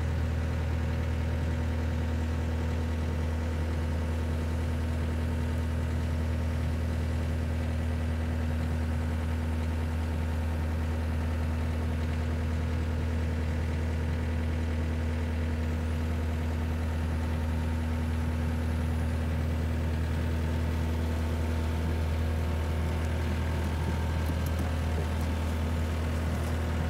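A diesel engine idles and rumbles steadily close by.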